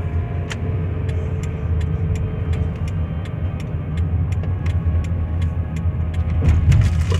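A car engine rumbles low and steady from inside the car as it drives.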